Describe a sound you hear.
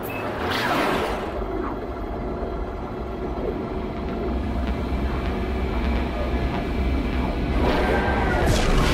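A spaceship roars with a deep rumble as it speeds along.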